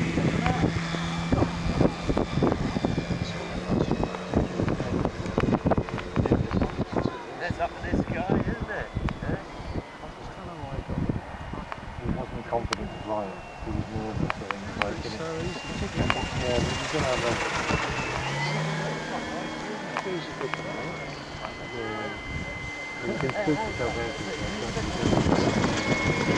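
A small model aircraft engine whines high overhead, rising and falling in pitch.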